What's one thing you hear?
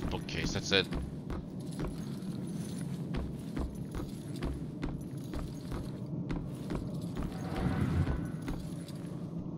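Footsteps thud at a slow, steady pace on a wooden floor.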